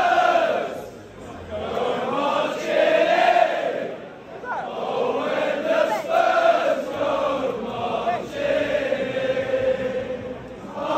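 A large crowd of young men chants and sings loudly together in a crowded echoing hall.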